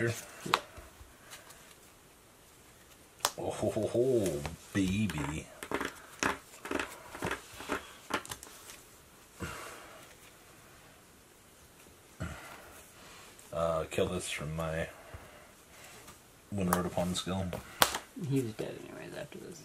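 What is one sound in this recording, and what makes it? Playing cards tap and slide on a soft mat.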